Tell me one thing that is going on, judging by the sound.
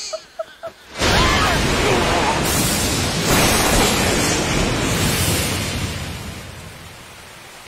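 A loud crash of thunder rumbles and slowly fades.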